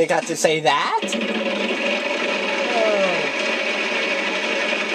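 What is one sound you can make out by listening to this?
A game show wheel spins with rapid ticking.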